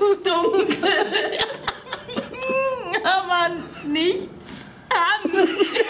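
A man laughs loudly and helplessly up close.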